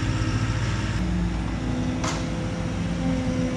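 A skid steer loader's engine revs up as it drives.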